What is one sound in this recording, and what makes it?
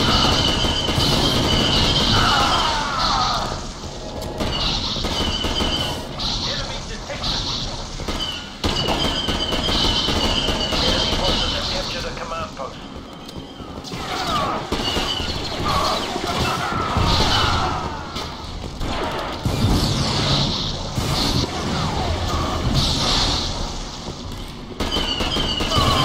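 Rapid laser gunfire zaps and crackles.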